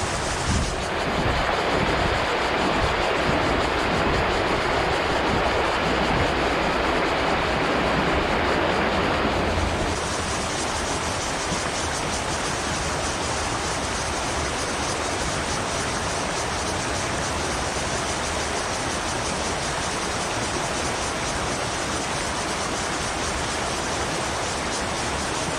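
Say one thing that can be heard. A shallow river rushes steadily over stones outdoors.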